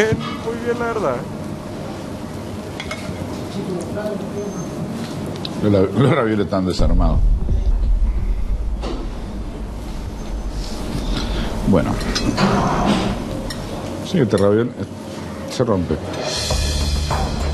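A knife and fork scrape on a plate.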